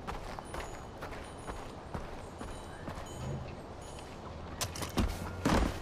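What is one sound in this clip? Footsteps crunch on gravel.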